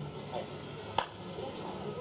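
Two people slap hands in a quick high five.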